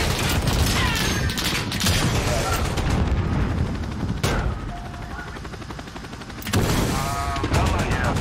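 Gunfire and explosions boom.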